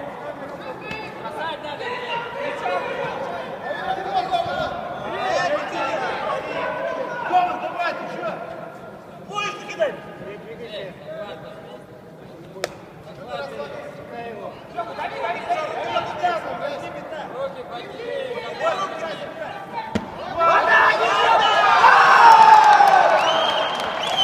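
Spectators talk and call out in a large echoing hall.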